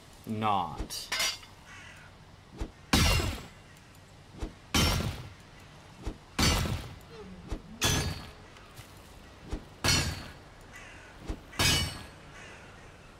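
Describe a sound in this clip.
A pickaxe strikes rock again and again with sharp knocks.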